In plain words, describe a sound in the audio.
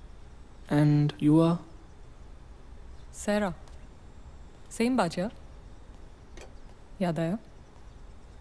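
A young woman speaks in short, tense bursts close by.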